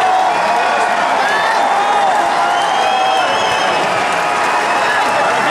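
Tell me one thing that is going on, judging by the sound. A large crowd cheers and whistles loudly in a big echoing hall.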